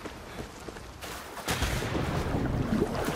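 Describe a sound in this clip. Water splashes loudly as someone plunges into the sea.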